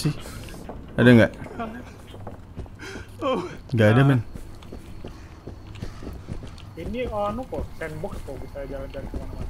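Footsteps scuff on stone paving.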